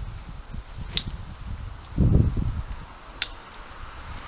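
A metal clip clicks shut on a strap.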